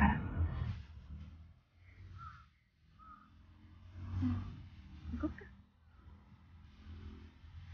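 A young woman giggles quietly.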